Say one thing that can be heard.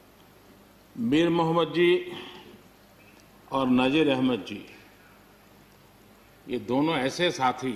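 An elderly man speaks slowly and deliberately into a microphone, pausing between phrases, in a large room that echoes.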